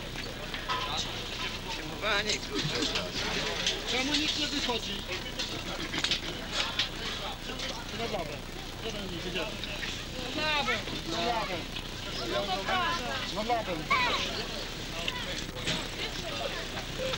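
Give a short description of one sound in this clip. A crowd of men chatter outdoors nearby.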